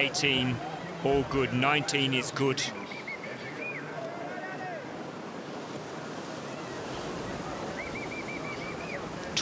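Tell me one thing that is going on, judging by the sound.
White water rushes and churns loudly over a weir.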